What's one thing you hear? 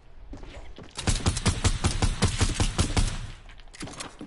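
Rapid gunfire bursts out in quick shots.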